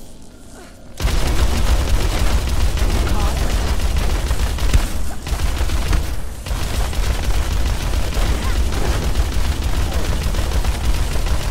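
Guns fire in rapid bursts with loud blasts.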